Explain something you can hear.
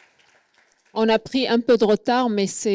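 A woman speaks into a microphone, heard close and loud.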